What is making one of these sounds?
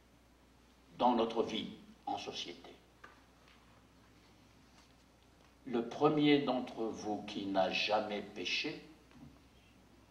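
An elderly man speaks calmly and deliberately into a microphone, with pauses.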